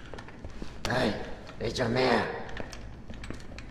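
A man says something sternly, close by.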